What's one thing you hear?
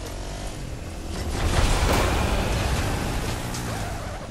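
A small motor engine revs and roars.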